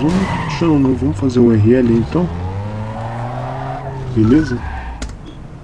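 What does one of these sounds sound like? A car engine revs loudly and rises and falls in pitch.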